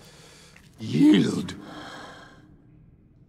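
A man speaks firmly and close.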